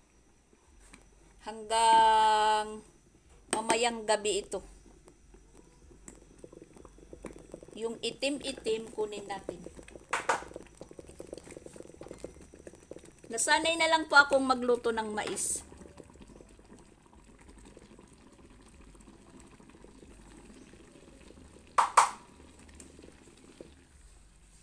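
A wooden spoon stirs and scrapes inside a pot.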